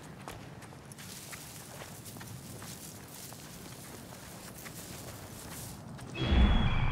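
Tall dry grass rustles as someone pushes through it.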